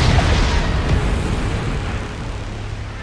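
A loud crash of shattering debris fades away.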